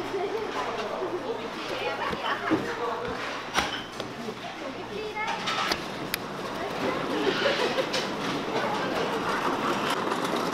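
A metal tool scrapes and scratches the inside of a coconut shell.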